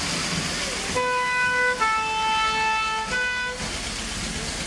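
A truck's brass horn honks in alternating tones.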